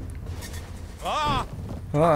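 A man cries out in alarm.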